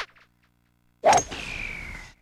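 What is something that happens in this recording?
A golf club swings and strikes the ball with a loud whack.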